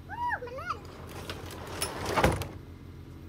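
A garage door rattles as it rolls down.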